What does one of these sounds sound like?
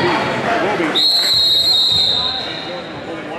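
A referee blows a whistle sharply.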